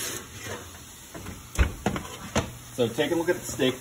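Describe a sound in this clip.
A heavy iron pan clunks down onto a stovetop.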